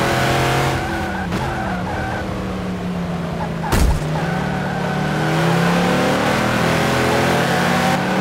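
Another racing car engine roars close by.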